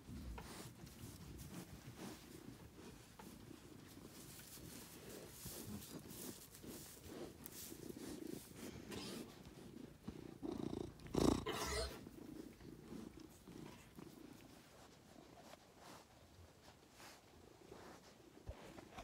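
A sheep sniffs and snuffles close by.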